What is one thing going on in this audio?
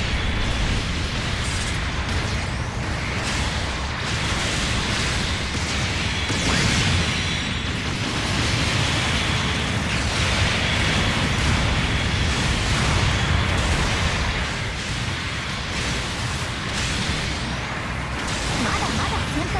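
Heavy mechanical thrusters roar steadily.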